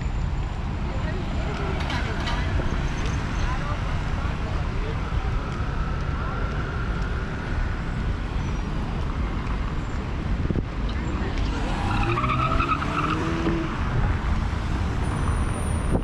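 Cars drive past on a busy street.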